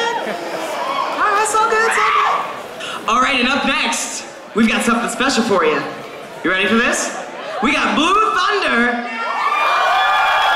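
A man speaks loudly and with animation into a microphone over a loudspeaker in a large echoing hall.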